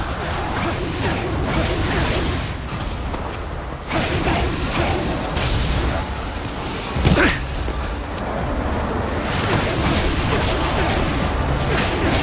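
Fiery blasts burst and crackle in quick bursts.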